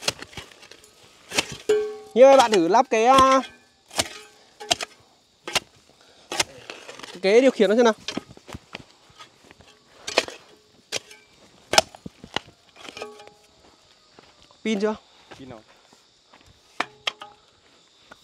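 A hoe chops into soil and stony ground with repeated dull knocks.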